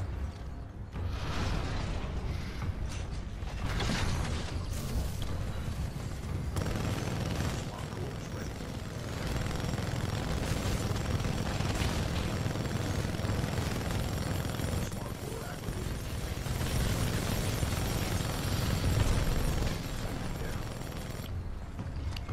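Heavy gunfire rattles rapidly and continuously.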